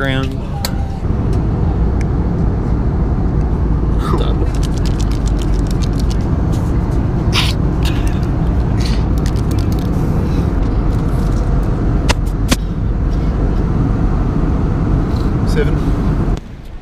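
A steady low engine drone fills an aircraft cabin.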